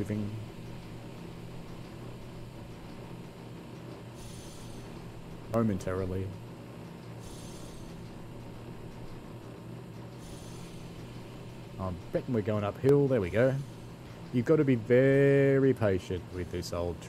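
A locomotive engine hums steadily.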